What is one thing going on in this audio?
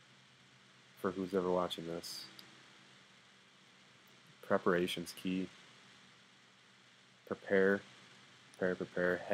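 A young man speaks calmly in short phrases with pauses, close to the microphone.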